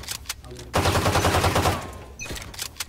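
A pistol fires rapidly in a video game.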